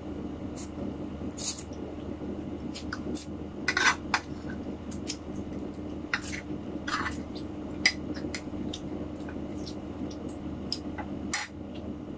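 A man chews and slurps food close by.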